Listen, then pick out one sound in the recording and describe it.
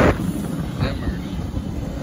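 A freight train rumbles past.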